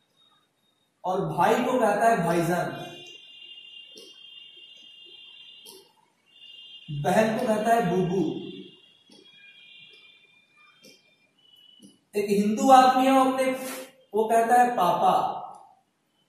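A young man speaks calmly and clearly, close by, in short phrases with pauses.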